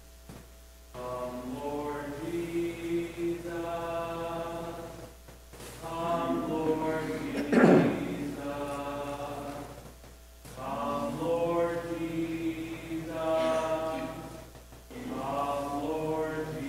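A man sings a slow chant through a microphone in a large echoing hall.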